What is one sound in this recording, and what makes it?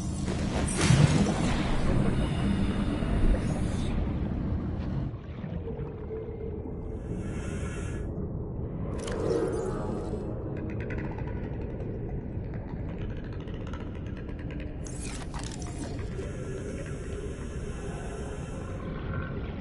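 Water rumbles low and steady all around, as if heard underwater.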